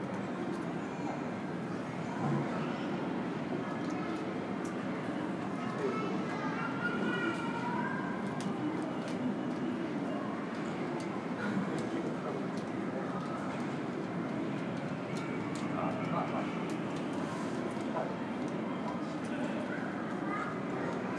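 Distant voices murmur, echoing through a large hall.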